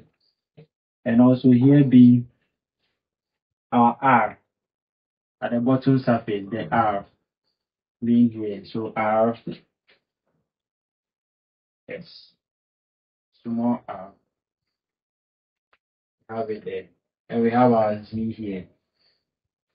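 A young man speaks calmly and clearly, close by, in short phrases with pauses.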